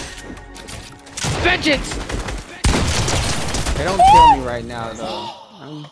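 Shotgun blasts boom in quick succession.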